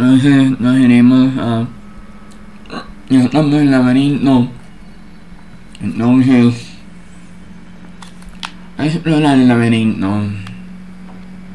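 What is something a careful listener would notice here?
A young man talks animatedly into a close microphone, in short bursts.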